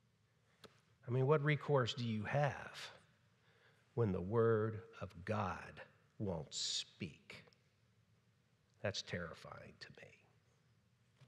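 A middle-aged man speaks calmly into a microphone in a room with a slight echo.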